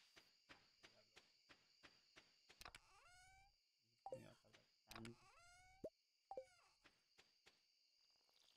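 Light footsteps tap steadily in a video game.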